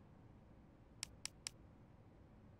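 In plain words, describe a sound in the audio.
A game menu ticks as items are selected.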